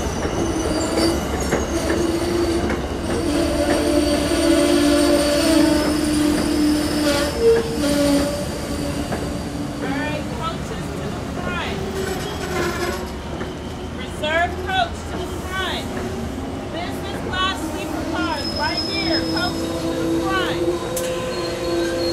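A passenger train rolls slowly past close by, its wheels rumbling on the rails.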